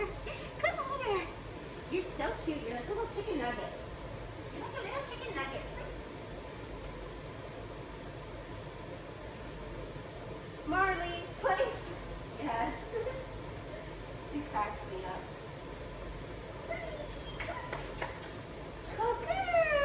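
A young woman talks to a dog in a lively, encouraging voice.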